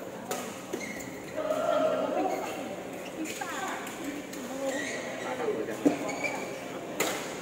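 Shuttlecocks are struck with rackets, with sharp pops in a large echoing hall.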